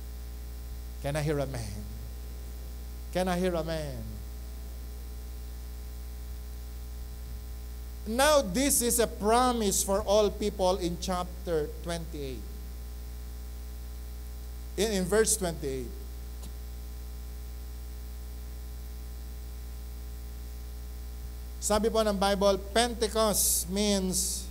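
A middle-aged man speaks into a microphone in short bursts with long pauses, heard through a loudspeaker.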